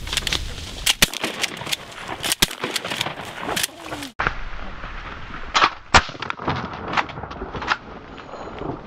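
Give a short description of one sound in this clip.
Shotguns fire in loud, sharp blasts.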